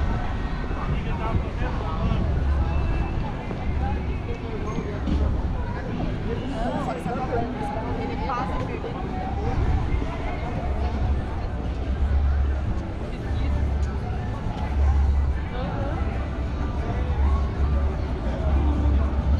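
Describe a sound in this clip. Men and women chat in passing outdoors.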